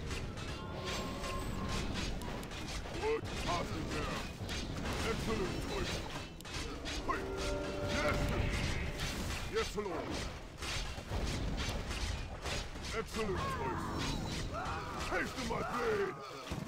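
Spell effects crackle and boom in a fast battle.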